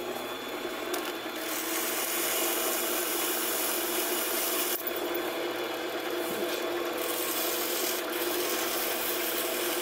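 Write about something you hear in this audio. Abrasive paper rasps against spinning metal.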